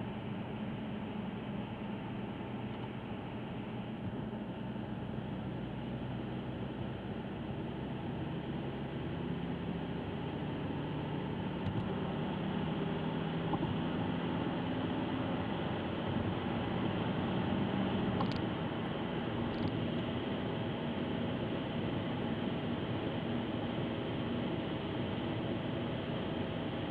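Tyres roar steadily on the road.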